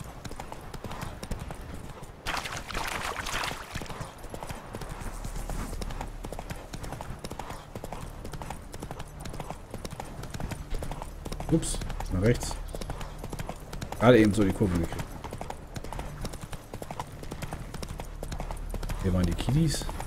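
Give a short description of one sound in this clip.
A horse gallops steadily, its hooves thudding on a dirt path.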